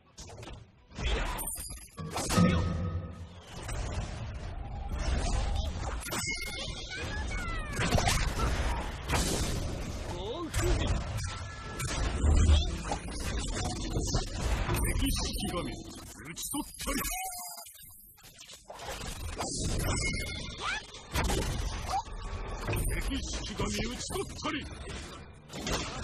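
Magic spell blasts and weapon hits crackle and boom in a game battle.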